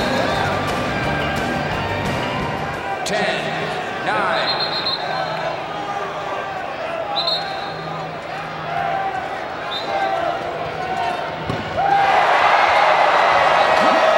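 A large crowd cheers and murmurs in a big echoing arena.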